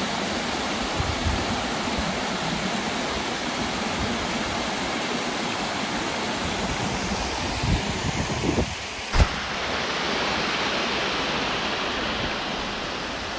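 A stream of water rushes over rocks.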